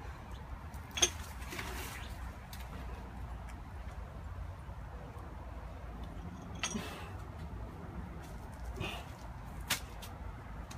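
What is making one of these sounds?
Metal weight plates on a barbell clank as it is lifted and dropped.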